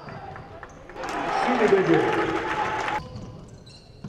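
A crowd cheers loudly and briefly.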